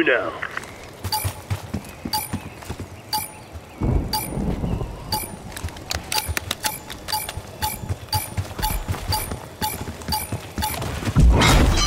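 Footsteps patter steadily in a video game.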